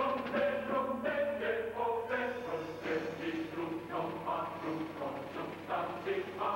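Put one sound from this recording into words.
A group of women sings along.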